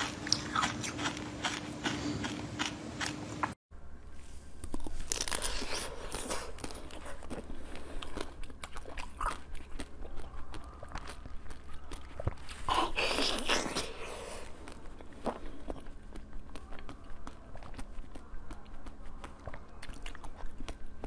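A young woman chews and crunches loudly close to a microphone.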